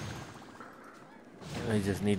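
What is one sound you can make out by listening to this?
Game sound effects ring out as a fighter strikes in battle.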